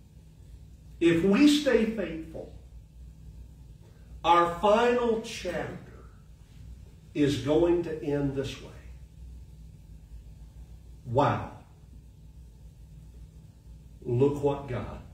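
An elderly man speaks slowly and deliberately in short phrases with pauses, heard close through a microphone in a reverberant room.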